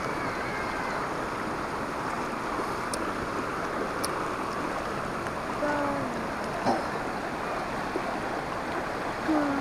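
A shallow river rushes steadily over rocks close by.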